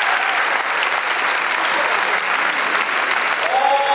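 A large audience claps in an echoing hall.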